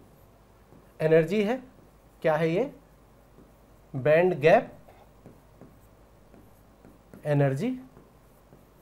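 A young man speaks in short, lively bursts close to a microphone.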